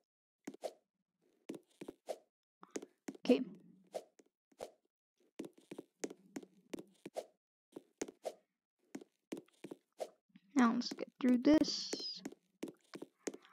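Quick, light footsteps patter on a hard floor.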